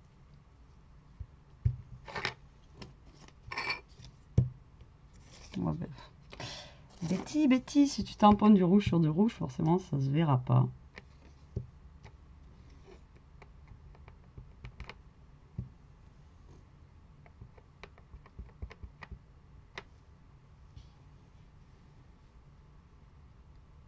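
Small objects tap and click on a tabletop.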